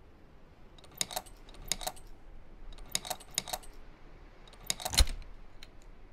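The dials of a metal combination lock click as they turn.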